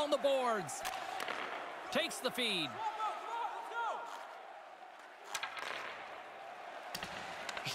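Hockey sticks knock against a puck.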